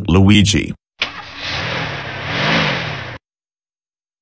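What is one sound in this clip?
A bus engine rumbles as the bus drives off.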